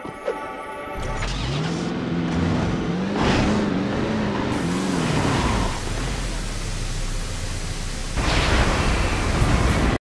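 A buggy's engine roars and revs as it drives over rough ground.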